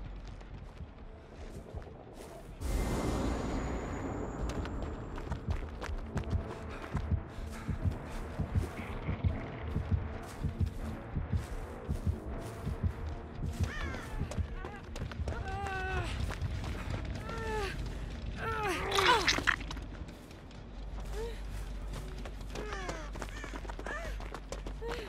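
Footsteps swish and crunch through tall grass.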